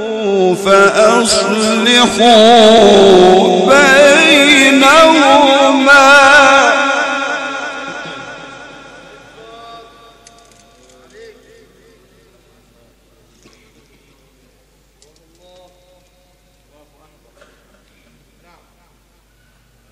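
A man chants loudly in a long, wavering melodic voice through a microphone, echoing in a large hall.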